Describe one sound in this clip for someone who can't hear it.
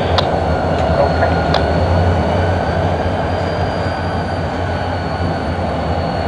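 Diesel locomotives idle with a steady low rumble.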